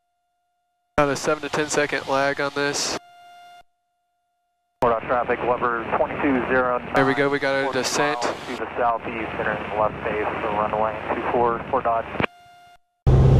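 A young man talks calmly through a headset microphone.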